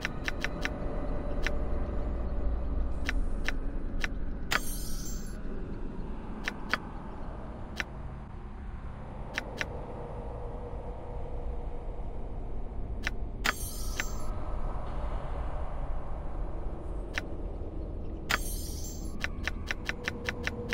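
Menu clicks tick sharply, one after another.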